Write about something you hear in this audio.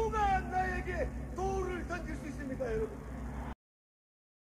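A middle-aged man speaks forcefully through a microphone.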